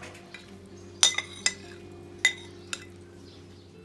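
Food scrapes and slides off a pan onto a plate.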